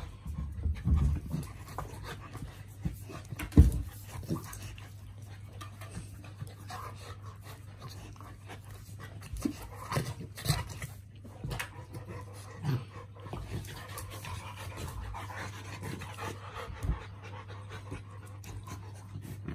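Two dogs play-fight, growling and snarling up close.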